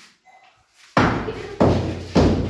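A hammer chips at a brick wall with sharp knocks.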